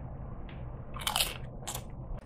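A man crunches a chip.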